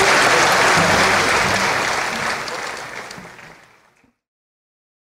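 An audience applauds in a large hall and the applause fades away.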